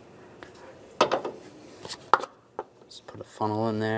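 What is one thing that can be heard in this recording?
A plastic funnel knocks into place.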